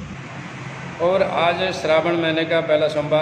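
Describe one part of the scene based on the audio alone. A middle-aged man speaks into a microphone up close with animation.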